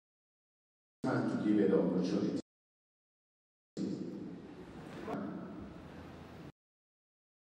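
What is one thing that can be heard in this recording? A man speaks slowly and with feeling through a microphone over loudspeakers.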